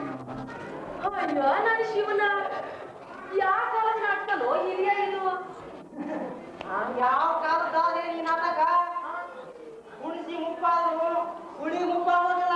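A woman sings a melodic song.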